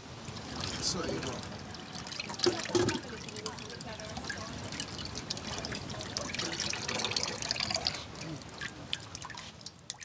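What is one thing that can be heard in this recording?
Liquid pours and splashes into a pot.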